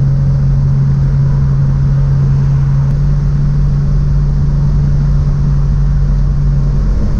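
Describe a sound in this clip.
A car rumbles along the road.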